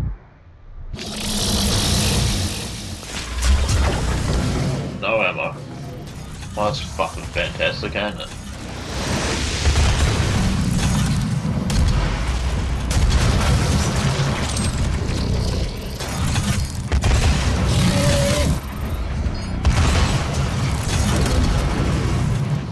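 Heavy guns fire in rapid blasts.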